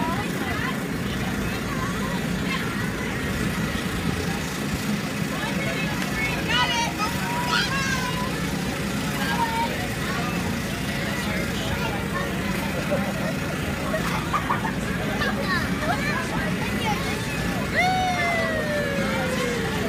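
A blower hums steadily close by.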